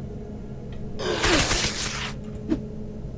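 A sword swings through the air with a loud whoosh.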